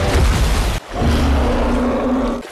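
A bear roars loudly and deeply.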